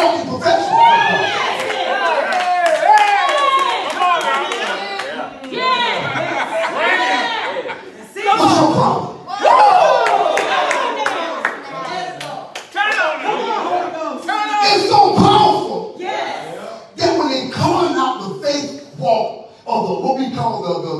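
A middle-aged man preaches with animation through a microphone in a large echoing hall.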